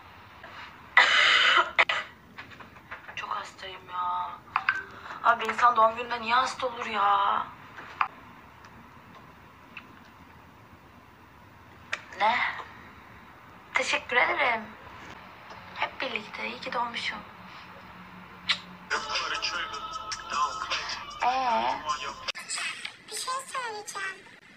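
A young woman talks casually and with animation close to a phone microphone.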